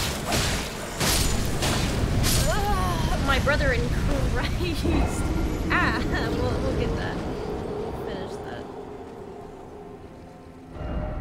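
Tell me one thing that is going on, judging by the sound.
A deep, rumbling blast roars and slowly fades.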